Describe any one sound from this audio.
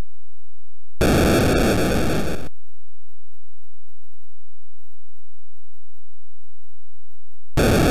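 An old video game sounds harsh bursts of crackling electronic noise.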